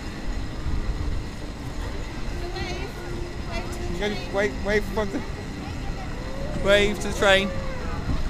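A small railway car rumbles up a track, approaching.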